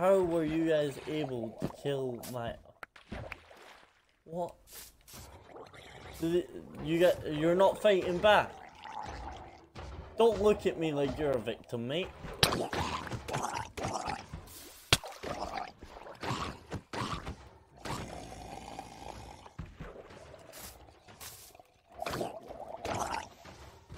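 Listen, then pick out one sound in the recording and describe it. Water splashes and bubbles.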